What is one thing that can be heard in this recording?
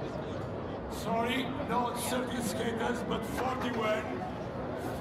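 A man speaks loudly to a group.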